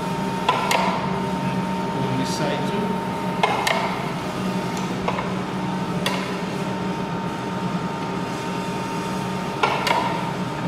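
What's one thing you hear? A cloth rubs against a metal blade.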